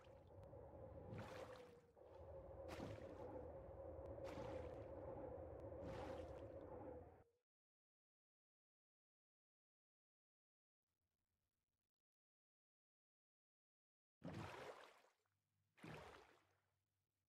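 Paddles splash through water in regular strokes as a small boat moves along.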